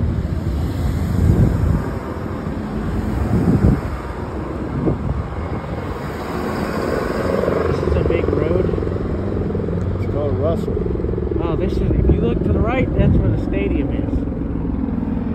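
Cars drive past close by on a road.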